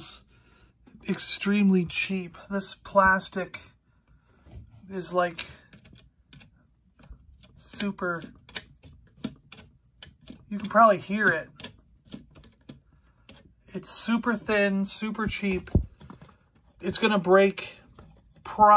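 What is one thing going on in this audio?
Hard plastic toy parts click and rattle as a hand moves them.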